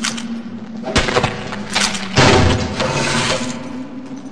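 A knife slashes and thuds into flesh.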